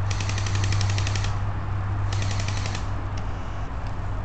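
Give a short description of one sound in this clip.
Dry leaves rustle and crunch as a person crawls over them.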